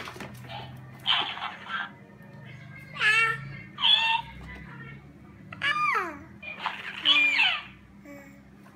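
A baby babbles and squeals loudly up close.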